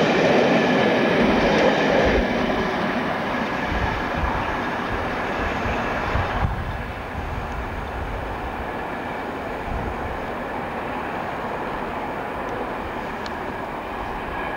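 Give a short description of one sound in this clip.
A passenger train rumbles away along the tracks, slowly fading into the distance.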